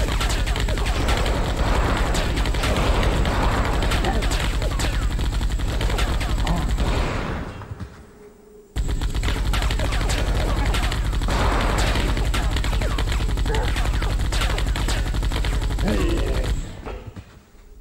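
A flamethrower roars in long bursts.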